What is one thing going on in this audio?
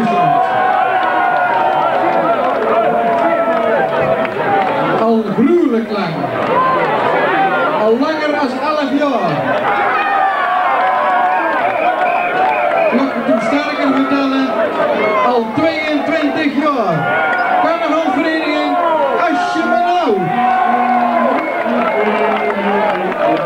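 A crowd chatters and cheers loudly.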